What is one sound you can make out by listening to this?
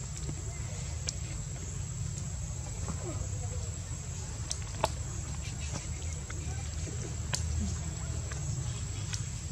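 A baby monkey squeaks faintly.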